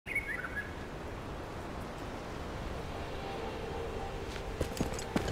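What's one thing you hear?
Footsteps tread on grass.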